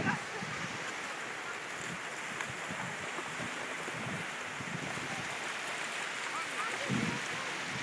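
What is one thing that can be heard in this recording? Dogs splash through shallow water.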